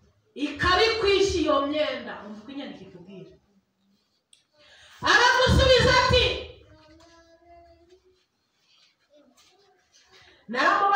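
A woman speaks with animation into a microphone, heard through a loudspeaker in an echoing room.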